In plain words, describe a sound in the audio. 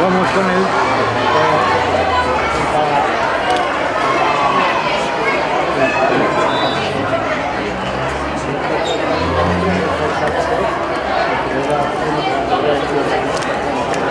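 A crowd of children and adults cheers and shouts outdoors.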